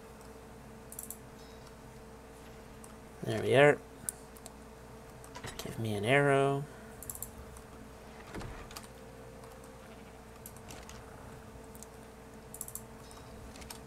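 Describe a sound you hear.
Soft interface clicks sound as menus open and close.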